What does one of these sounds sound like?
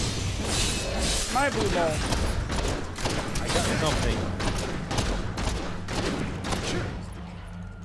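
Magic spells burst and whoosh in quick succession.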